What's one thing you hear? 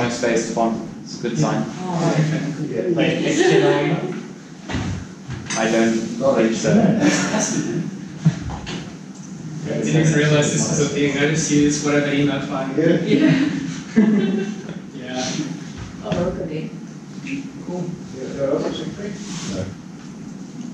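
A young man speaks with animation, explaining to a group.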